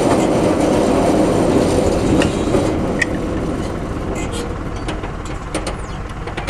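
A baler rattles and clanks as it rolls along.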